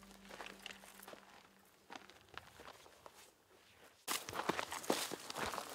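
Footsteps crunch on dry, stony ground.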